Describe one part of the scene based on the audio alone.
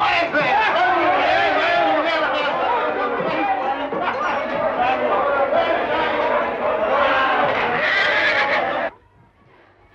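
Several men shout excitedly and close by.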